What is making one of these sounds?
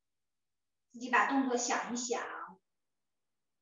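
A woman speaks briefly and calmly over an online call.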